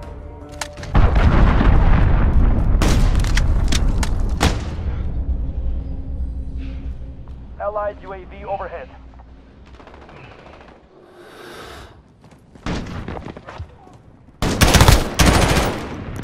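Gunfire rattles in loud, rapid bursts.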